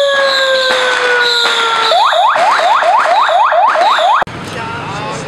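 A siren wails from an emergency vehicle.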